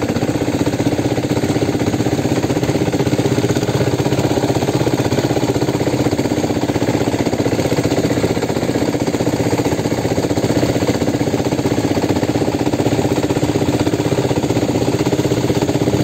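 A boat engine drones loudly and steadily.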